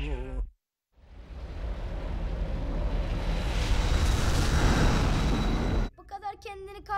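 A spaceship engine roars and swells as it passes.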